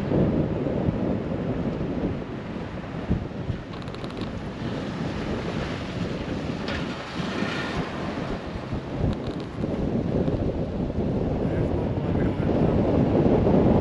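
Tyres hum on a wet road.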